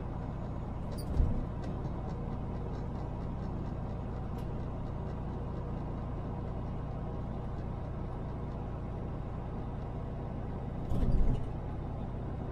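Tyres thump over bumps in the road now and then.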